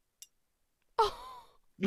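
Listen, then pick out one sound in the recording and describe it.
A woman laughs briefly.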